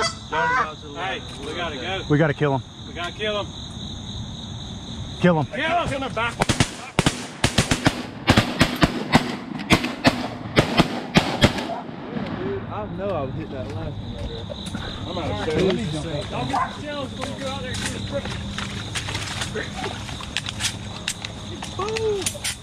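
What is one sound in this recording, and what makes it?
Geese honk loudly nearby.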